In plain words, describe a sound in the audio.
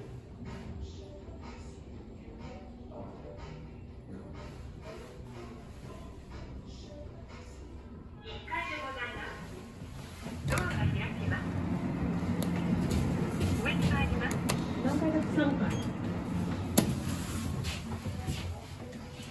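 An elevator hums steadily as it moves.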